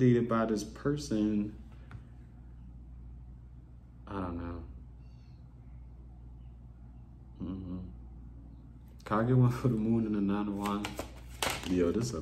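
A young man speaks casually and close up, with pauses.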